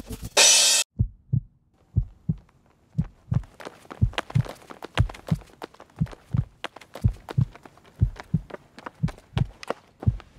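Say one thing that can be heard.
Footsteps run on pavement in a quick, even rhythm.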